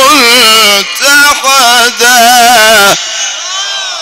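An elderly man chants loudly and melodiously through a microphone.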